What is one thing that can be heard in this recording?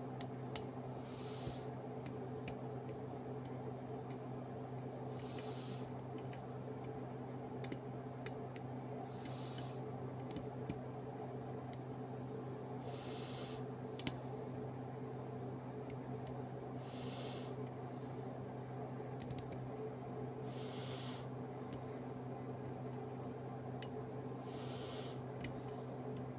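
Metal picking tools click and scrape inside a lock.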